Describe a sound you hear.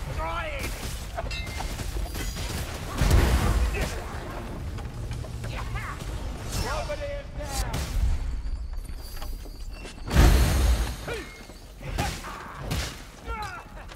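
Blades swing and strike with heavy thuds in a fight.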